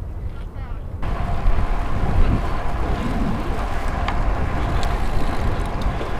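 Bicycle tyres hum on pavement.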